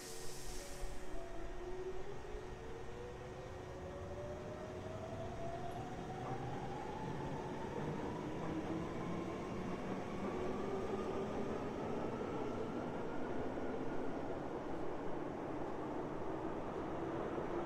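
An electric train motor whines, rising steadily in pitch as the train speeds up.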